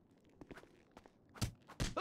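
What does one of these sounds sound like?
Sharp blows land with heavy thuds.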